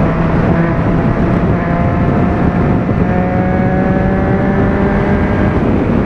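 A motorcycle engine drones steadily at high speed.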